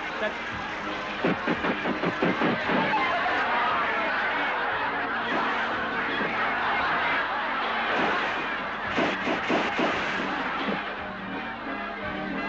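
A crowd laughs and cheers loudly.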